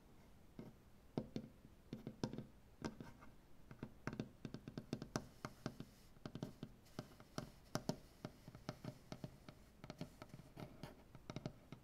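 Fingers tap and drum quickly on a wooden tabletop, close by.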